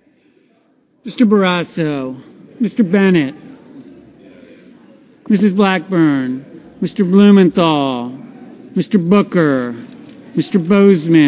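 A man reads out loud into a microphone in an echoing hall.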